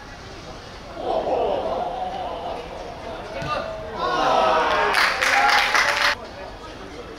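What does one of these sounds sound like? Men shout and cheer outdoors.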